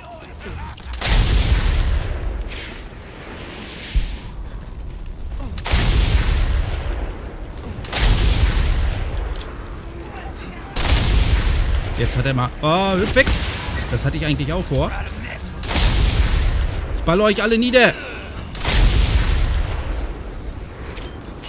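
Loud explosions boom and roar again and again.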